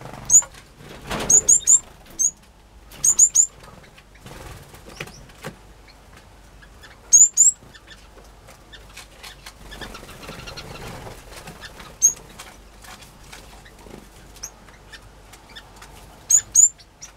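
Small birds chirp in short, high bursts close by.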